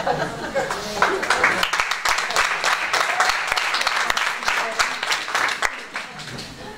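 An audience claps and then quiets down.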